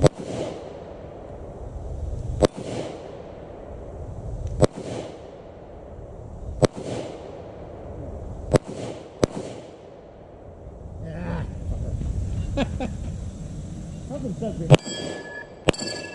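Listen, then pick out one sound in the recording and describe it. Gunshots crack at a distance outdoors, each followed by a rolling echo.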